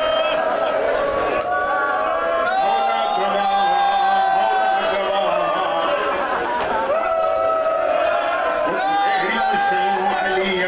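A crowd of men chants along in unison.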